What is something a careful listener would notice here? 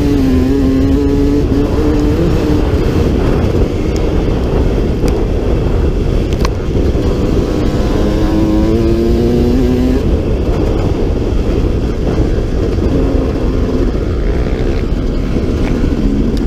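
Tyres rumble over a bumpy dirt track.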